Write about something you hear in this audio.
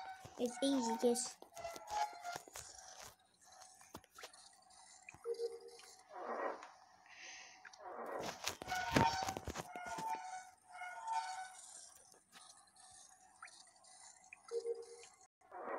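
A metal valve wheel creaks as it turns.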